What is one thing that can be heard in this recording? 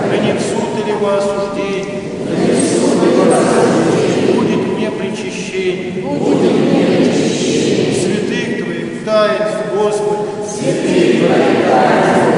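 Men chant together in a resonant echoing hall.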